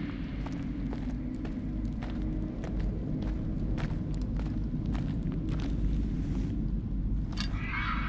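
Footsteps crunch slowly on gravel.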